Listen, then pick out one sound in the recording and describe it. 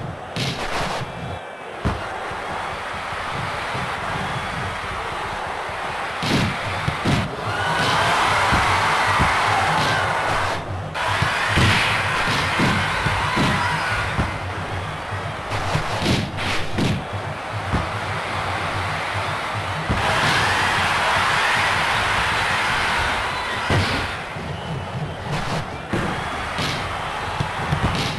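A stadium crowd roars and cheers steadily.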